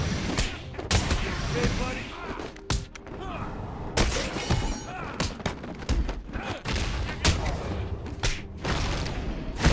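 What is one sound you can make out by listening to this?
Punches and kicks land with heavy thuds in a fast fight.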